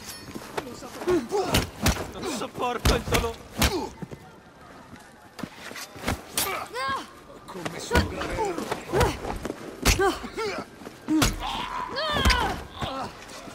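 Punches land with heavy thuds in a fist fight.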